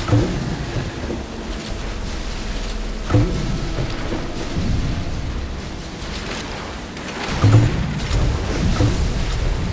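Water splashes and sprays behind a speeding boat.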